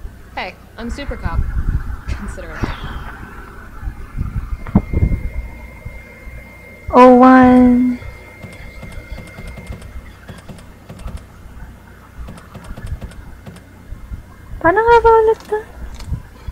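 A young woman talks with animation through a headset microphone.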